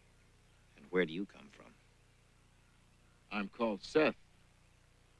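A middle-aged man speaks in a deep voice.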